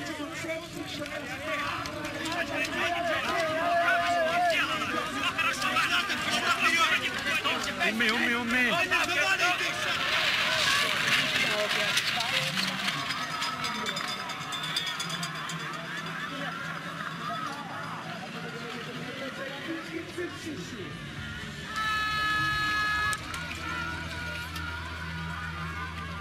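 Skis and poles scrape and swish on hard snow.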